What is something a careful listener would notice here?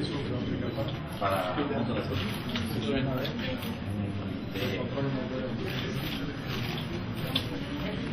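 A crowd of people murmurs and chatters.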